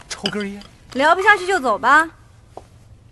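A young woman speaks at close range.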